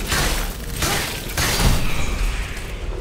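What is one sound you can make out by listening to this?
Fiery blasts crackle and burst.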